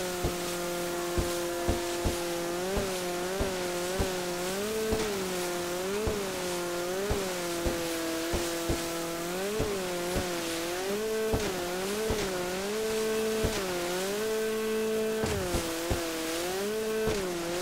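Water splashes and slaps against a jet ski's hull in repeated thumps.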